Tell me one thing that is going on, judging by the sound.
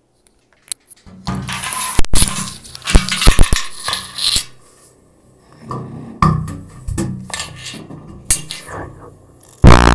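A tuba blares loudly right against the microphone.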